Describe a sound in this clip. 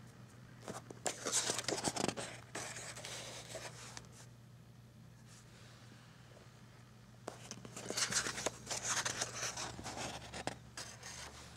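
Paper pages rustle and flip as a booklet's pages are turned.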